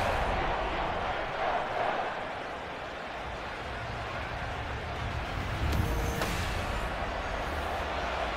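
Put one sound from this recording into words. A stadium crowd cheers and roars in a large open space.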